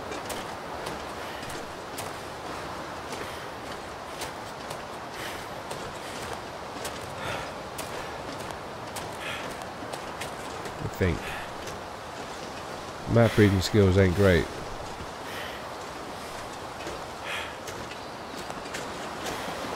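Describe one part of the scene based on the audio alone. Wind blows steadily through a forest.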